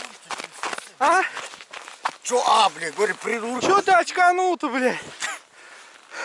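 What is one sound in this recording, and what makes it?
A young man shouts with excitement close by.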